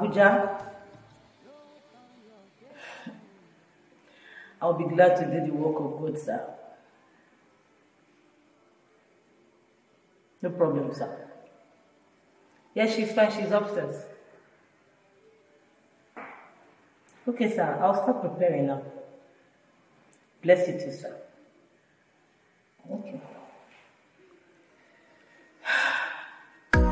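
A woman speaks expressively on a phone, close by, pausing between phrases.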